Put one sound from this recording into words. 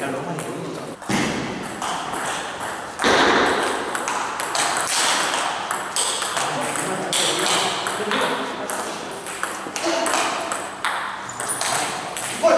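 A ping-pong ball clicks back and forth off paddles and a table in an echoing hall.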